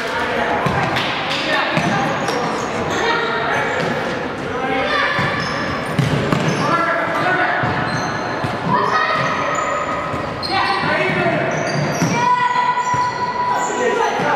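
A futsal ball is kicked with dull thuds on an indoor court.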